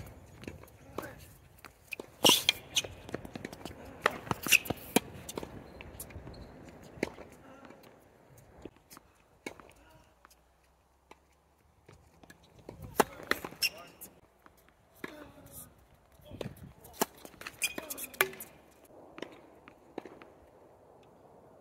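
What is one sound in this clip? Tennis shoes scuff and squeak on the hard court.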